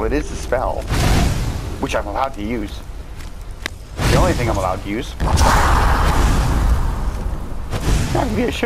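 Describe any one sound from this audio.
Flames roar and crackle in loud bursts.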